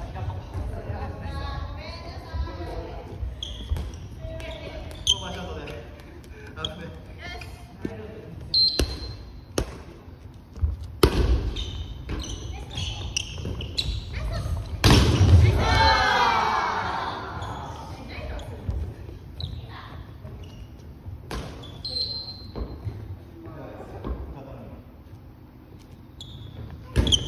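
Young players call out and talk in a large echoing gym.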